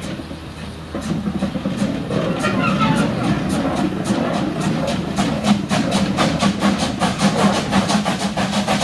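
A steam locomotive puffs rhythmically as it pulls away.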